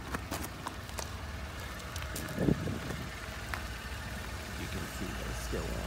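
Footsteps crunch on icy snow.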